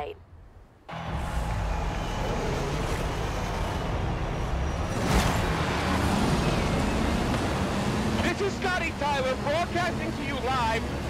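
A rally car engine roars as the car accelerates away.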